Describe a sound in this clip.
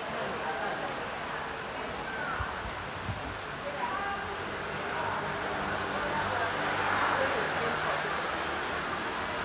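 A crowd of elderly people chats in the distance.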